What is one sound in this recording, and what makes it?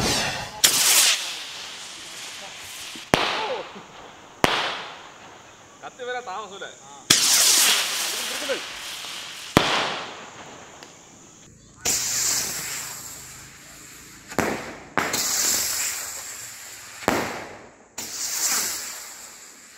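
Fireworks crackle and fizz.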